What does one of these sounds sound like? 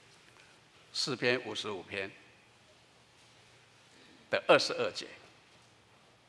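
An elderly man speaks calmly through a microphone, with long pauses between phrases.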